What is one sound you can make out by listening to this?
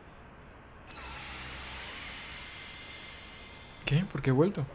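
A bright magical burst swells with a rushing whoosh.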